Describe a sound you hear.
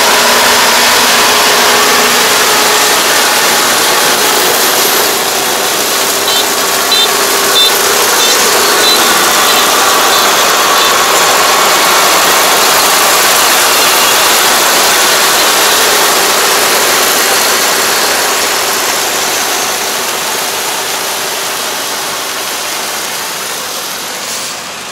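A harvester engine drones steadily close by, then fades as it moves away.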